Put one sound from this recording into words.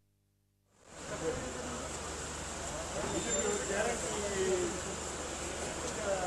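A crowd of men murmur and talk nearby.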